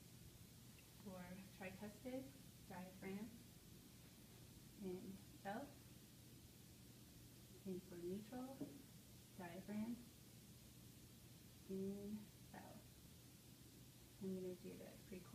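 A young woman speaks calmly nearby in short phrases.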